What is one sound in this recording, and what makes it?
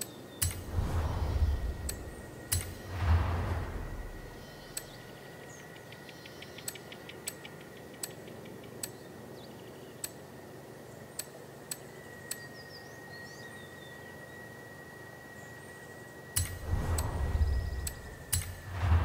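Menu clicks tick sharply as selections change.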